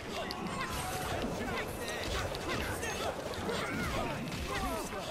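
Game combat effects whoosh and crash continuously.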